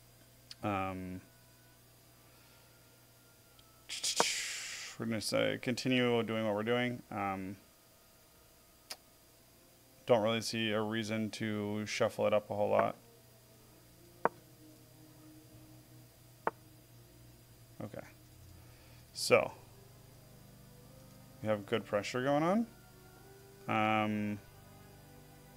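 A middle-aged man talks casually into a close microphone, in short bursts.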